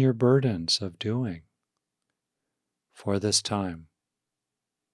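An older man speaks calmly and softly, close to a microphone.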